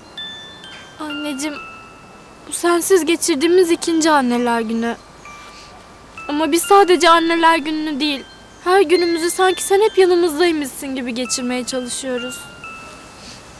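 A young woman speaks tearfully and shakily, close by.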